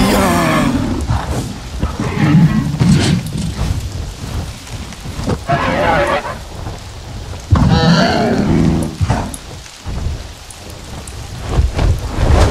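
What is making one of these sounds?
Wind rushes past during flight.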